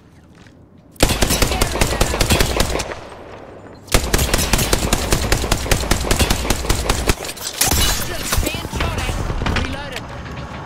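Rapid automatic gunfire rattles in fast bursts.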